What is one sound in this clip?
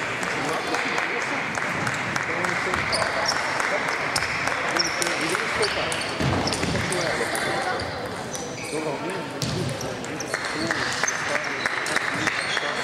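Table tennis balls click sharply against paddles and tables in a large echoing hall.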